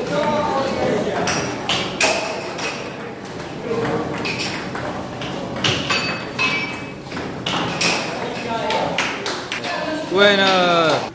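A table tennis ball clicks back and forth off paddles and a table.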